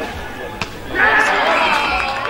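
Young men cheer and shout outdoors.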